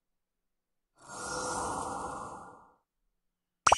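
A whooshing game sound effect swells and fades.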